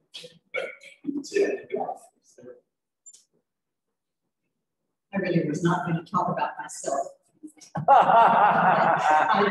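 An elderly woman speaks into a microphone in a large echoing room.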